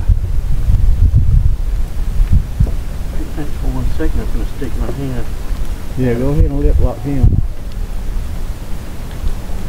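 Wind buffets and rumbles outdoors on open water.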